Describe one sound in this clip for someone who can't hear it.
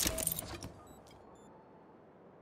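A short menu click sounds.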